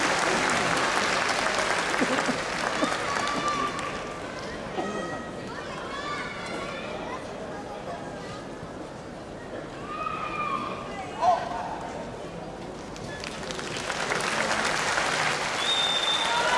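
A large crowd applauds in an echoing arena.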